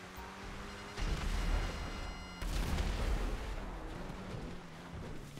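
Tyres rumble and crunch over a dirt track.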